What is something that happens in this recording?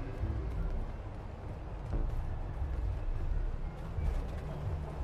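Footsteps walk over rough pavement.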